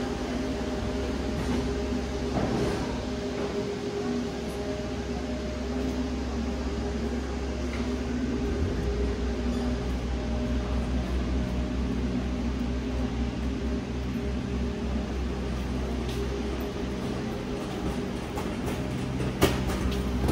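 Footsteps tap on a pavement.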